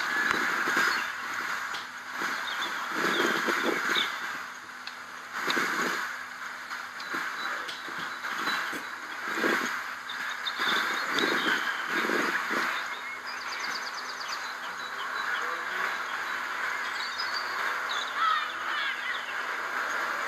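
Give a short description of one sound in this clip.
A dog's paws patter softly across grass.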